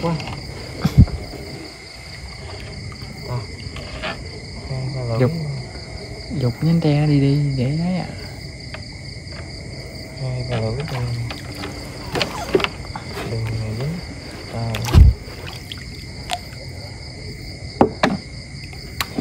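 Something knocks against a wooden boat.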